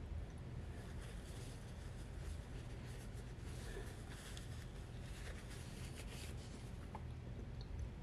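A paper napkin rustles and crinkles.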